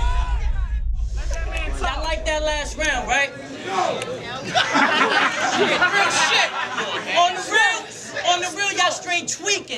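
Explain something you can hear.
A young man raps aggressively and loudly, close by.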